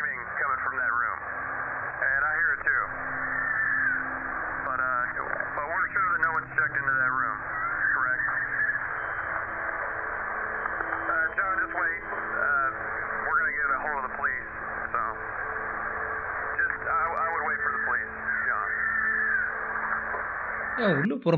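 A man speaks quietly and tensely, heard through a muffled, band-limited recording.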